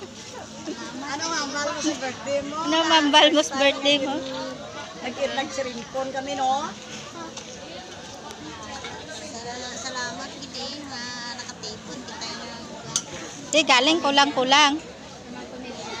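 An elderly woman talks with animation close by.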